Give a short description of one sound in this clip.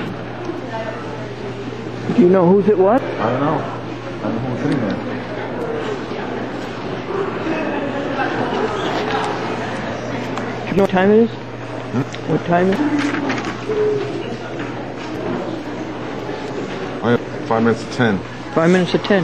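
An organ plays in a large echoing hall.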